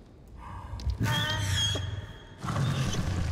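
A large beast lets out a high, warbling cry.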